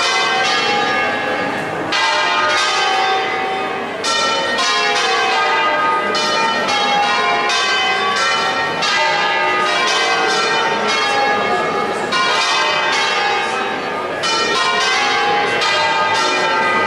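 Large church bells ring out in a rapid, overlapping peal.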